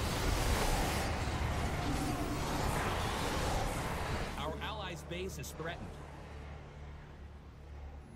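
A young man talks calmly into a headset microphone.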